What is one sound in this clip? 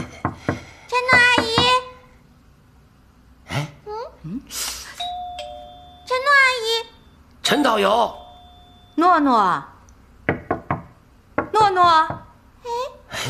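A young girl calls out in a high voice.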